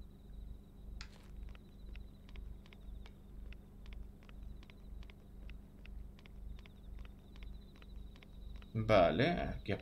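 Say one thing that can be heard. Footsteps tap quickly and steadily.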